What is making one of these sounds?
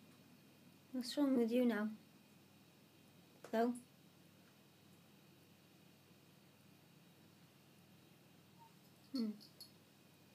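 A cat meows loudly several times close by.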